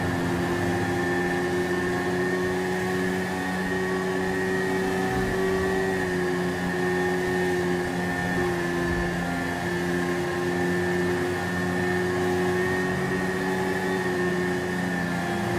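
A motorcycle engine hums steadily at speed.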